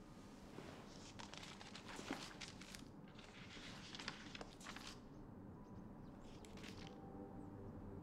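A woman speaks calmly and reads aloud close by.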